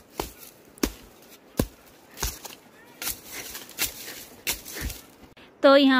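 A hoe chops into dry soil with sharp thuds.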